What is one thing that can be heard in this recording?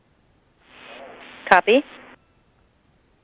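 A man speaks briefly over a crackling radio link.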